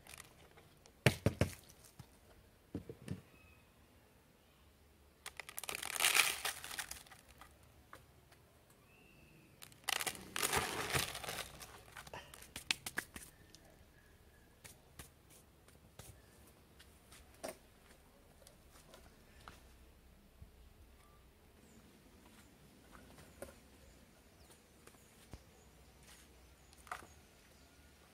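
A plastic tub knocks and scrapes on a table.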